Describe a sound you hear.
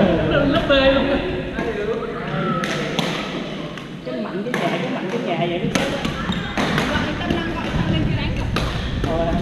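Several young men call out and talk across a large echoing hall.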